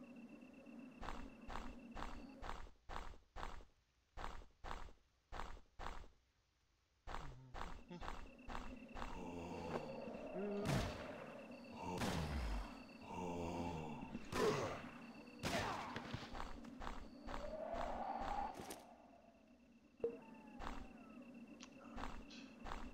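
Footsteps fall in an even walking rhythm.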